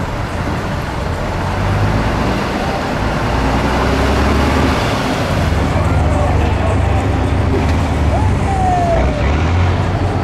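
A heavy truck engine roars and labours loudly, outdoors.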